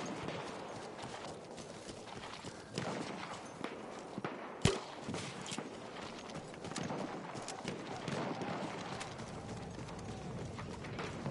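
Footsteps crunch quickly over gravel and grass.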